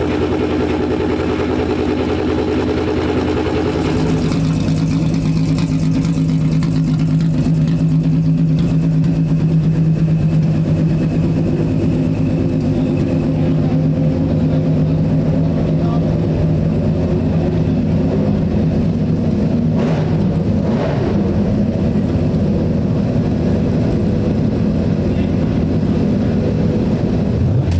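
A racing car engine idles loudly with a deep, steady rumble.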